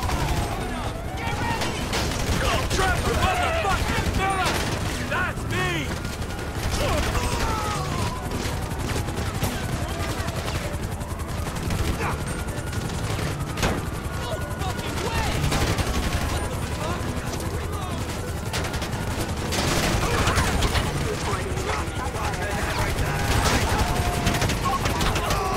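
A helicopter's rotor thrums overhead.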